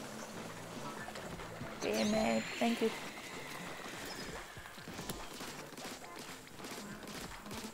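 A video game ink gun sprays and splatters in quick bursts.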